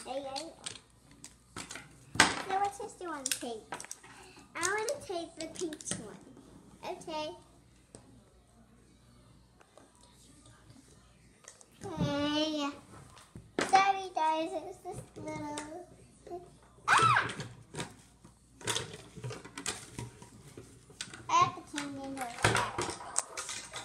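A young girl talks playfully up close.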